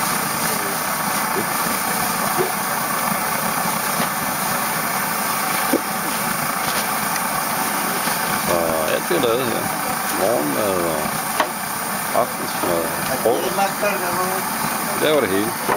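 A camping stove burner roars steadily.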